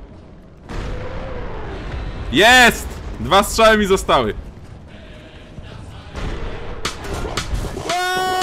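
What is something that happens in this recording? Shells explode with loud blasts.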